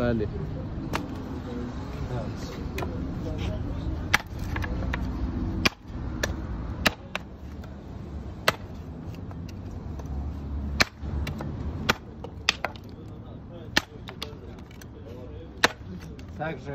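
A shovel blade strikes wood with sharp chopping knocks.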